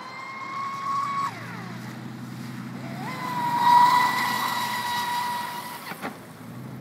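A small motor whines high as a model boat speeds across the water, its pitch dropping and rising.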